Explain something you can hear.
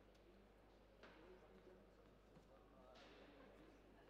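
A tennis ball is struck sharply with a racket, echoing in a large hall.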